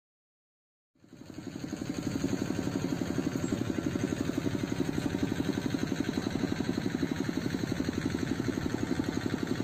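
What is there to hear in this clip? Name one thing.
A combine harvester engine runs with a loud, steady, fast throbbing rattle.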